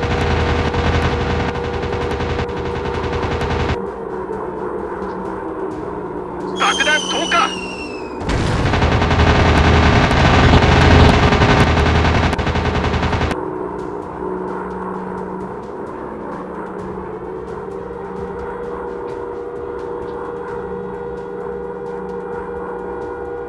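A propeller plane engine drones steadily.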